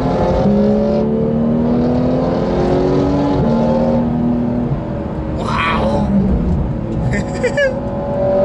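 A car engine roars loudly, its pitch rising and falling through the gears.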